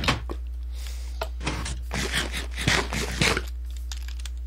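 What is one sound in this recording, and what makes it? Leafy blocks break with short rustling crunches.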